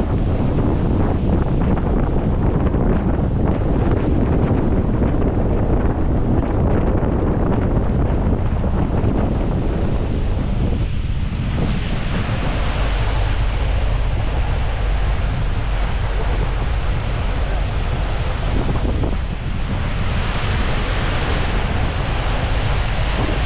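Wind rumbles loudly against a moving car.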